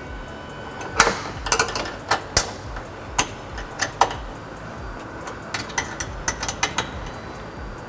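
A tool clicks and clatters against plastic car trim.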